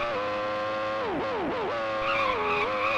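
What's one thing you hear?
Another racing car engine zooms past with a quick falling pitch.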